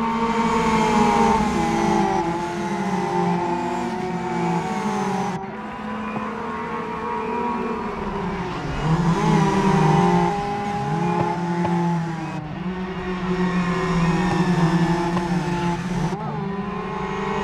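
Racing car engines roar and whine, rising and dropping in pitch as gears change.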